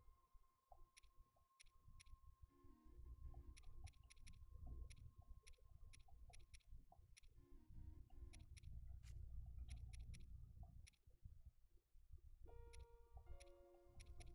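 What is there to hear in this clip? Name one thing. Short game menu ticks sound as a cursor moves between items.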